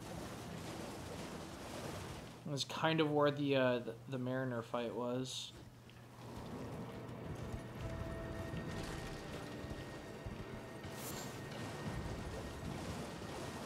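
A horse gallops splashing through shallow water.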